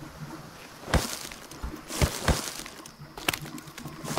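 Leaves rustle and snap as a plant is pulled up.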